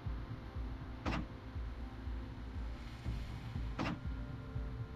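A soft interface click sounds as a menu page changes.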